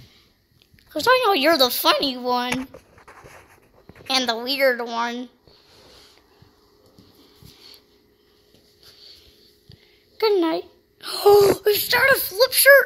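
A young girl talks playfully close by.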